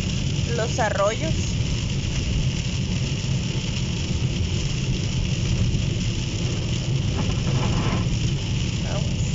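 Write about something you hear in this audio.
A car engine rumbles low while driving.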